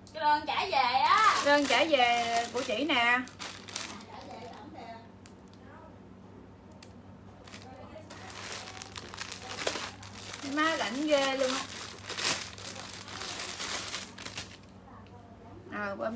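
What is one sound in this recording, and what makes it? Plastic bags rustle and crinkle as a young woman handles them.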